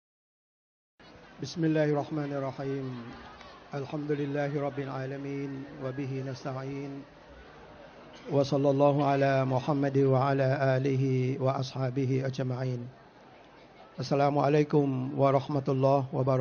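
An elderly man speaks calmly into a microphone, heard through a loudspeaker.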